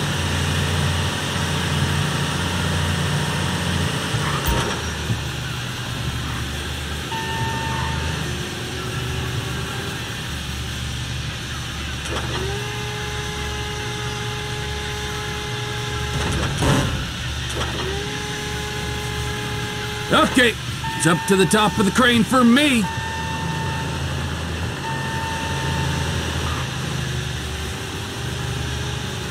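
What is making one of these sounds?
A heavy vehicle's engine rumbles steadily.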